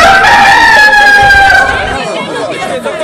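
A man speaks loudly through a microphone and loudspeaker.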